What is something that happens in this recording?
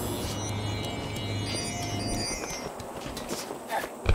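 Footsteps clatter quickly on wooden boards.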